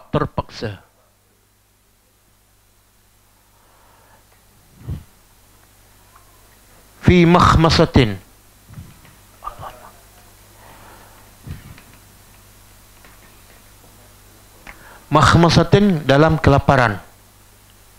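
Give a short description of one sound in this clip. An older man lectures through a headset microphone.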